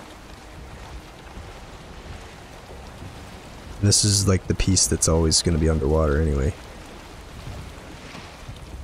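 Waves wash gently against a wooden boat.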